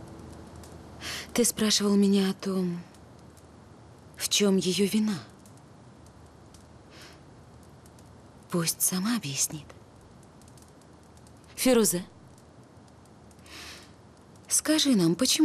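A woman speaks calmly and closely.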